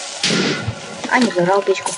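A game explosion booms and crackles.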